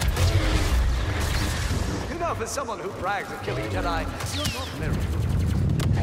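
A lightsaber hums and swooshes through the air.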